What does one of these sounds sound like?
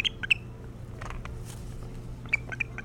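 A large bird flaps its wings with a brief whoosh.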